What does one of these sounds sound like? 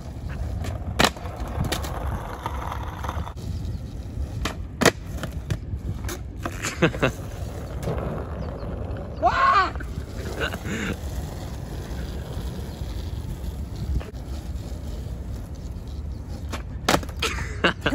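A skateboard clacks sharply against concrete.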